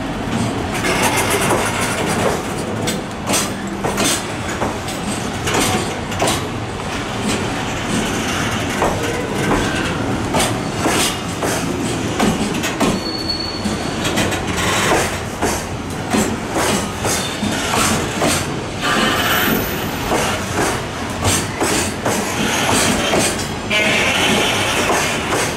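A freight train rumbles past close by, loud and steady.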